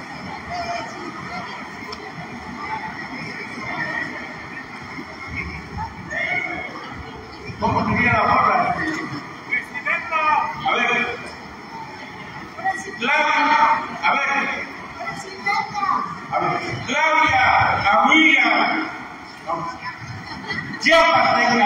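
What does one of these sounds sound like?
A large crowd sings together in an echoing hall.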